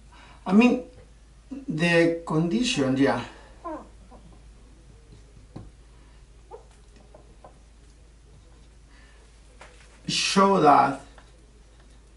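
A middle-aged man speaks calmly and close by, explaining.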